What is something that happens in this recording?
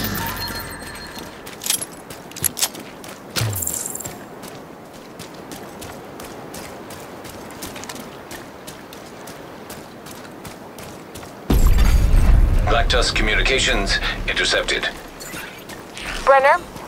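Footsteps crunch steadily over leaves and brush.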